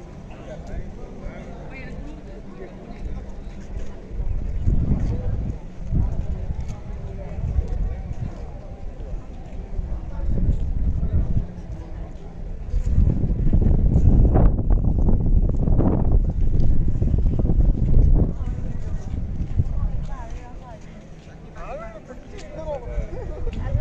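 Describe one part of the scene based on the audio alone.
Men and women chat in the distance outdoors.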